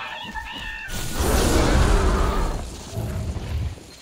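Lightning crackles and booms loudly.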